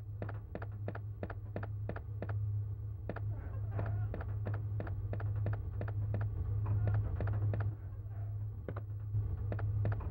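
Footsteps walk steadily across a hard floor.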